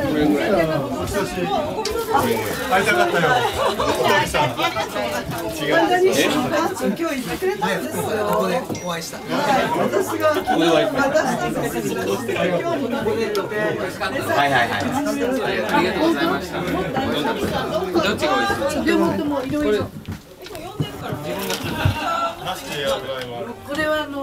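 A crowd of adults chatters all around, close by.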